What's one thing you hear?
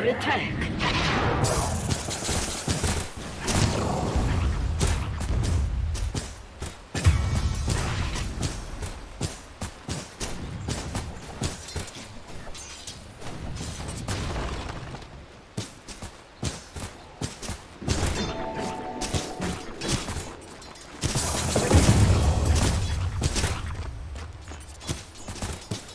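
Blades clash and strike in rapid bursts.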